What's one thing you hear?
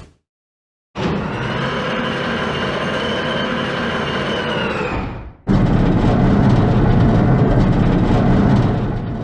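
A heavy metal door slides open with a steady mechanical hum.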